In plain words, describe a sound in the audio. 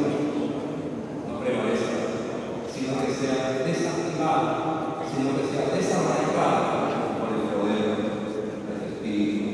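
An elderly man speaks steadily into a microphone in a large echoing hall.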